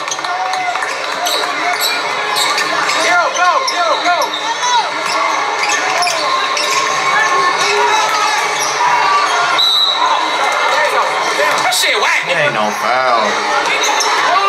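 Sneakers squeak on a wooden court in a large echoing gym.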